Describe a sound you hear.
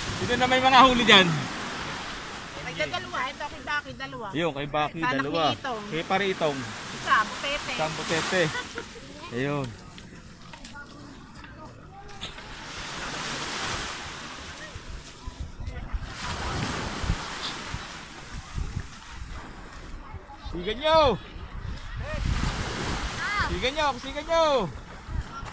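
Several people talk and call out nearby outdoors.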